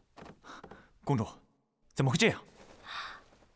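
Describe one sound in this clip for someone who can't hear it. A young man speaks sharply.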